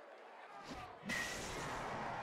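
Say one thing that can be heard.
A baseball smacks into a catcher's glove.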